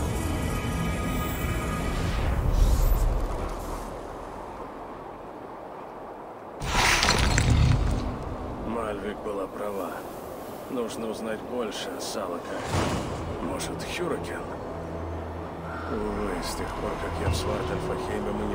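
Wind blows steadily outdoors through falling snow.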